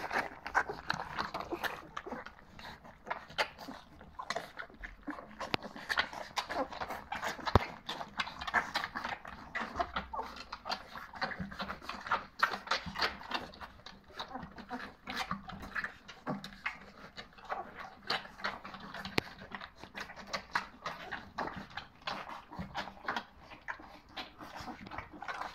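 Puppies lap and slurp food from a metal bowl close by.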